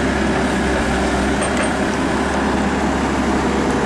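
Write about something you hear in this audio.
An excavator bucket scrapes and digs into soil.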